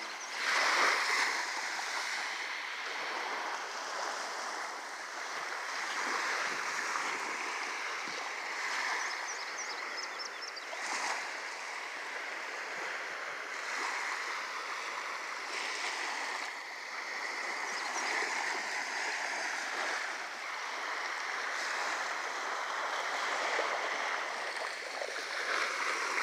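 Small waves lap softly on a sandy shore.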